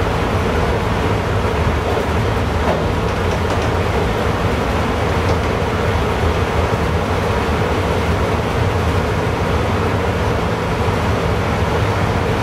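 A train rumbles steadily along the rails, heard from inside the cab.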